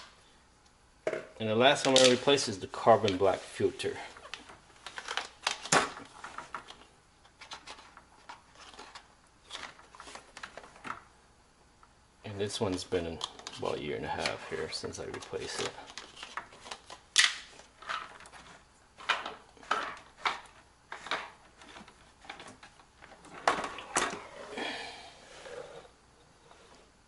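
Hard plastic parts knock and rattle as they are handled close by.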